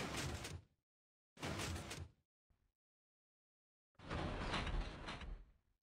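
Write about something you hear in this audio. A wooden trapdoor clacks open and shut.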